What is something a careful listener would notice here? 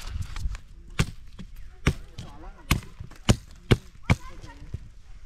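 A machete chops sharply into wood.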